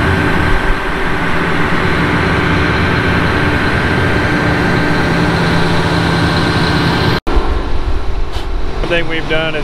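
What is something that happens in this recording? A combine harvester's engine rumbles steadily close by.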